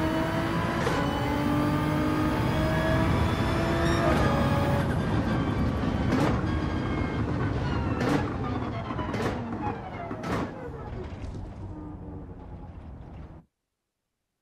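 A racing car engine roars at high revs, shifting gears as it speeds along.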